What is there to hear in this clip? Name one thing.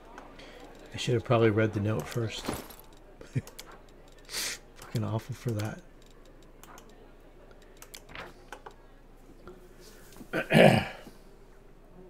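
Soft interface clicks and chimes sound as game menus open.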